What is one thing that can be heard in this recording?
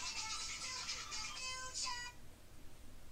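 A short electronic game jingle plays.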